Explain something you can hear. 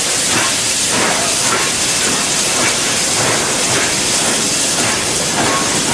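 Steel wheels clank over rail joints.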